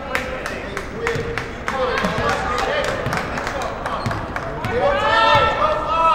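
A basketball bounces steadily on a wooden floor in an echoing gym.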